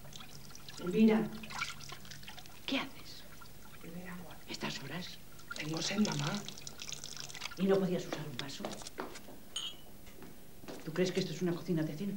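An elderly woman speaks nearby.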